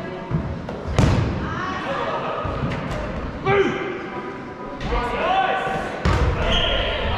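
A ball is struck with a hard knock.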